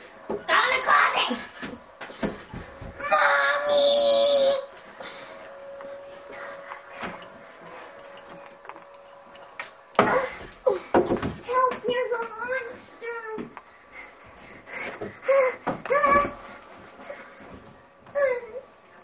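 A boy talks and shouts with excitement close by.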